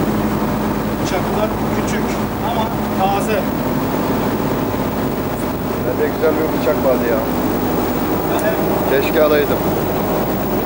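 A middle-aged man talks casually.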